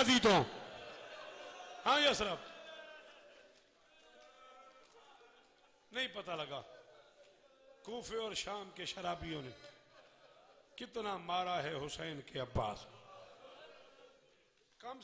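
A man speaks forcefully in bursts through a microphone, with loud echoing reverberation.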